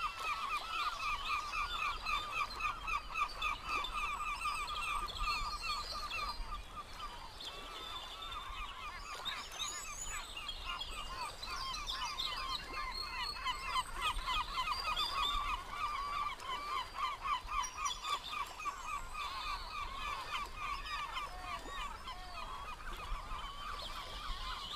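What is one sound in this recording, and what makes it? Waves wash gently against the shore.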